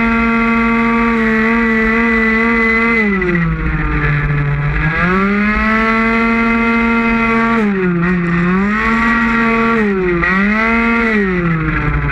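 A motorcycle engine roars at high revs, its pitch dropping and rising as it shifts and accelerates.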